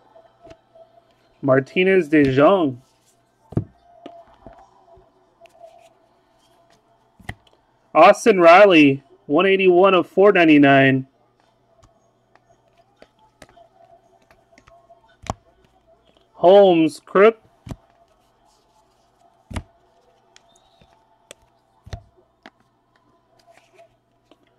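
Trading cards slide and flick softly against each other.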